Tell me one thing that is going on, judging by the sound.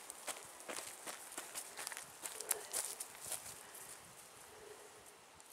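Dogs bark excitedly outdoors.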